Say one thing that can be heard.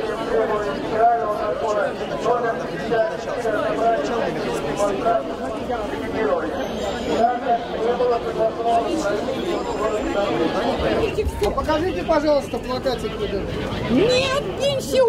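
A large crowd chants and murmurs outdoors.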